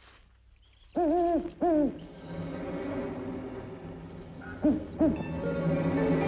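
An owl hoots loudly.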